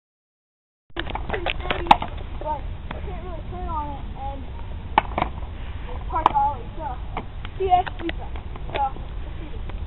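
Skateboard wheels roll and rumble on asphalt.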